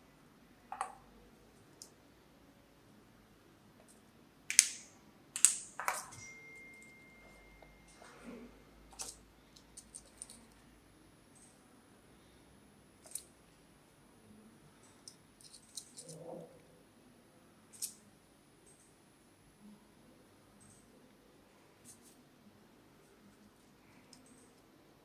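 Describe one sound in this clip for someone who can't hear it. Small metal parts click and snap together in pliers, close by.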